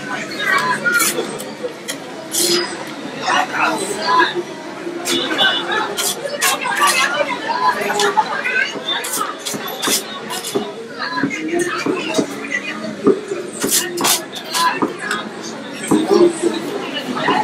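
A metal spatula scrapes and clinks against a metal tray.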